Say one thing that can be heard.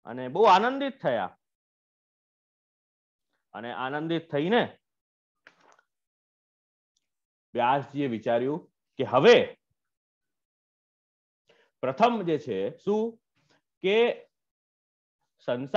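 A man speaks in phrases with pauses, heard over an online call.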